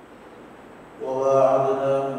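A boy recites in a melodic chanting voice through a microphone.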